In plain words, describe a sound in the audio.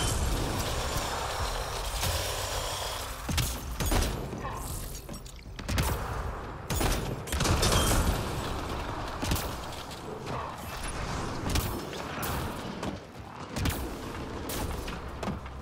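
Energy weapons blast and crackle in short bursts.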